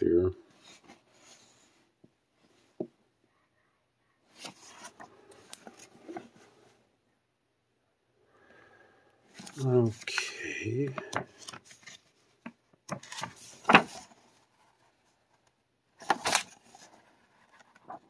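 Paper pages rustle and flip as a booklet is leafed through.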